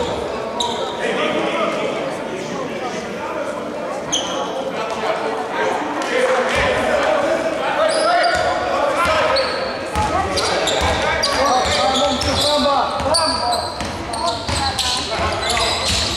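Spectators chatter and shout in a large echoing hall.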